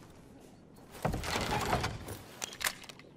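A wooden crate lid creaks and thuds open.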